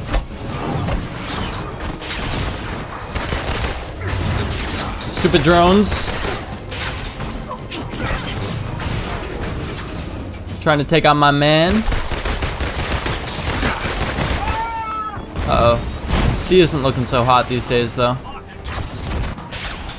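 Gunfire and energy blasts crackle and boom rapidly.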